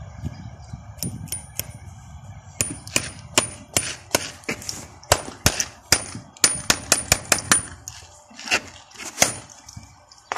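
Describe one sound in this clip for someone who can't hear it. A farrier's hammer drives nails into a horseshoe on a hoof.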